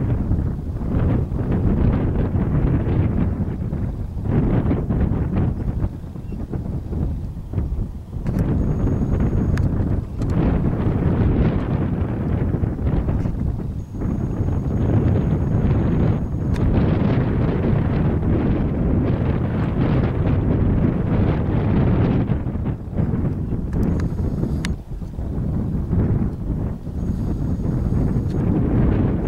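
Strong wind gusts roar across the microphone outdoors.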